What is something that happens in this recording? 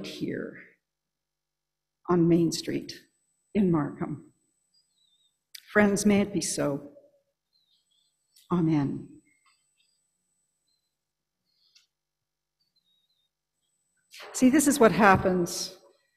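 A middle-aged woman speaks calmly into a microphone, in short phrases with pauses.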